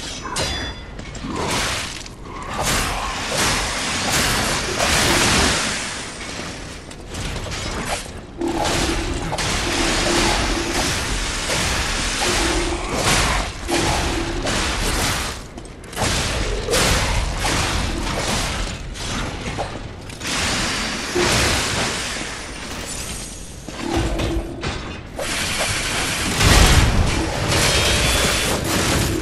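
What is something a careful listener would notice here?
Swords clash and strike metal again and again.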